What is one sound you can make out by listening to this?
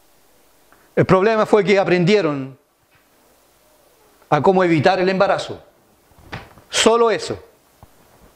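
A middle-aged man preaches forcefully into a microphone in short bursts.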